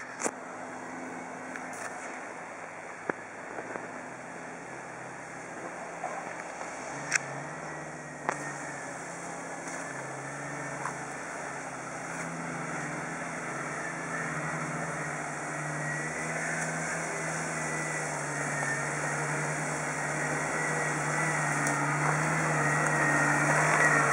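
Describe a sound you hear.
An off-road vehicle's engine rumbles as it crawls slowly over rough ground.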